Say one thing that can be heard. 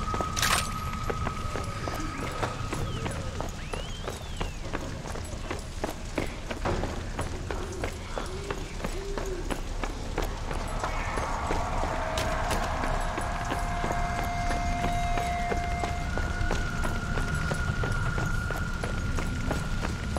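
Footsteps crunch steadily on stone.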